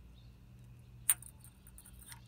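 A metal socket clinks against a bolt.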